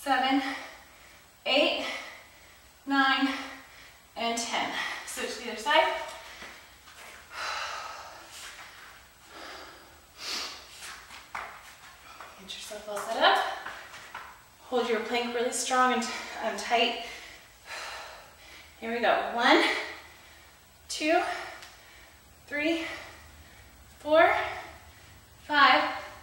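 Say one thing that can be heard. A young woman talks steadily.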